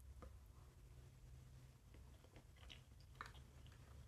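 A young woman eats with a spoon close by.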